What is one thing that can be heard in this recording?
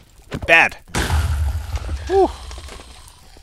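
A fireball bursts with a low, rumbling boom.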